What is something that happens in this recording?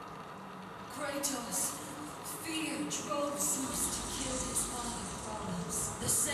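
A man's deep voice speaks slowly through a television's speakers.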